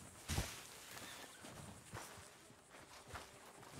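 Boots thud on a wooden floor.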